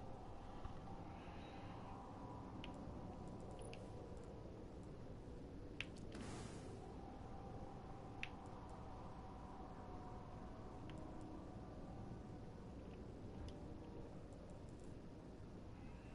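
Soft menu clicks sound as selections change.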